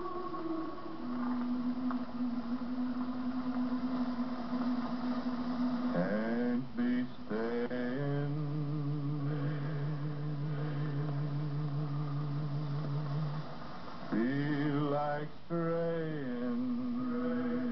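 A man sings loudly in long, held, wavering notes, breaking into yodel-like leaps.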